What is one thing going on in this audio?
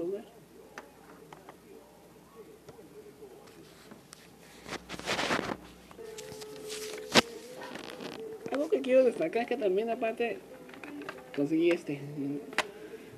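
Plastic cassette cases click and clatter as a hand handles them.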